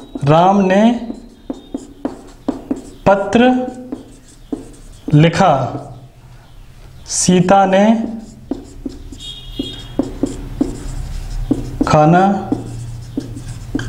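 A young man speaks clearly and steadily, as if teaching, close by.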